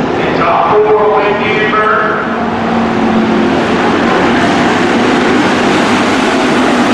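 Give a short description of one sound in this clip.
A pack of stock cars races by on a dirt track, with engines roaring at full throttle.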